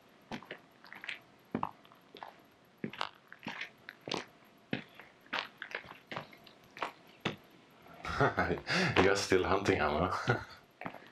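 Footsteps crunch on a stony dirt trail.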